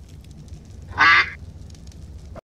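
A bird squawks loudly.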